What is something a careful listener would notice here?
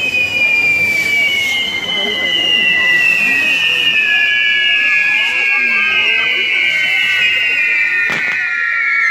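A crowd chatters and calls out nearby.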